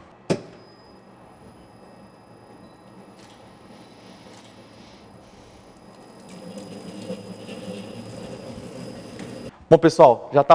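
A mixer whirs steadily as it beats a mixture.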